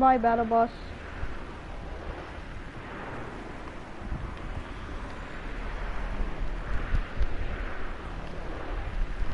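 Wind rushes steadily past during a glide through the air.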